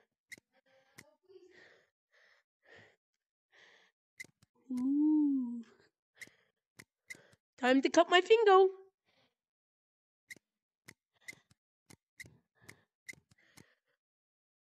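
Pliers snip and click with sharp metallic clicks.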